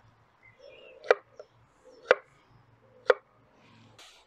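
A knife chops through potato onto a wooden board.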